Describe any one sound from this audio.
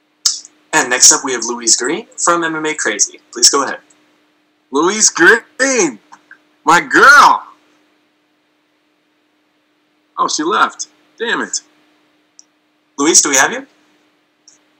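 A man speaks casually over an online call, pausing now and then.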